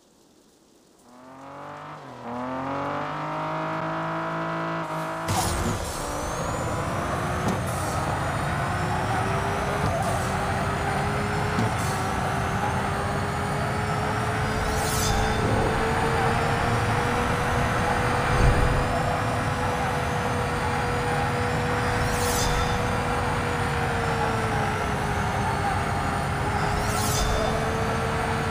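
A racing car engine revs up and roars at high speed.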